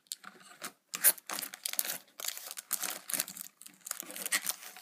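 A plastic card pack crinkles and rustles close by.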